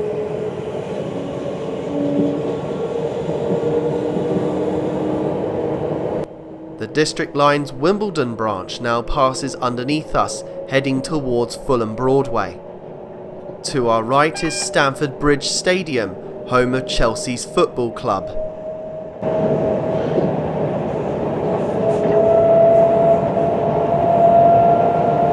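A train rolls along the rails with a steady humming rumble.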